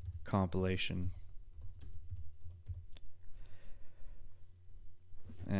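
A man speaks with animation, close into a microphone.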